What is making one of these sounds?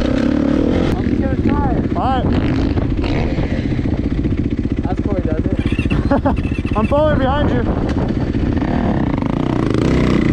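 A dirt bike engine idles close by.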